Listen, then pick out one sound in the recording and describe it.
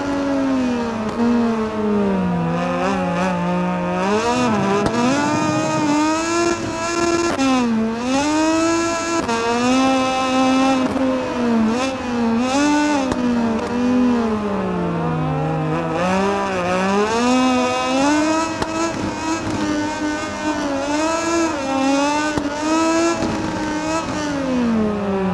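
A motorcycle engine whines loudly, revving up and down through the gears.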